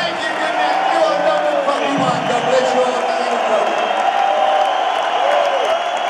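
A man speaks loudly into a microphone over a loudspeaker system.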